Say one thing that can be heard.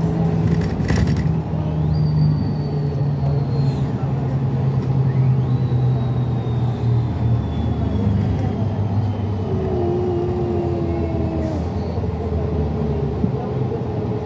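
Bus tyres roll along a road.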